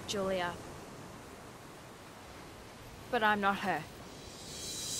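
A young woman speaks briefly and calmly nearby.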